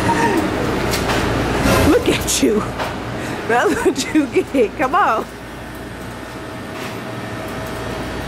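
A drink machine whirs as it pours a frozen drink.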